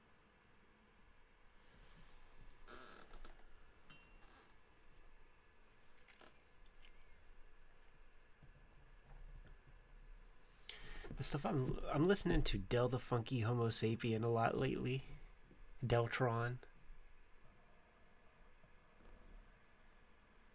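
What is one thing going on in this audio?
A marker pen scratches softly across paper.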